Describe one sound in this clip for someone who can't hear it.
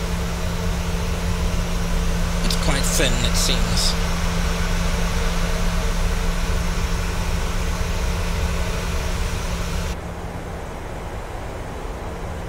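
Jet engines roar steadily and then turn muffled and quieter.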